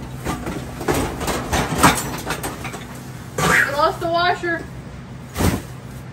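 Plastic bags rustle as they are handled.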